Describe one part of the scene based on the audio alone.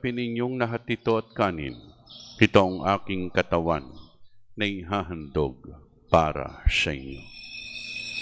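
A man chants slowly through a microphone in an echoing hall.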